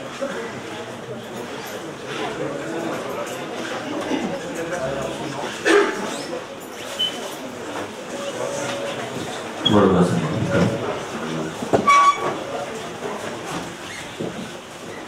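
A man's voice chants a prayer through a microphone in an echoing hall.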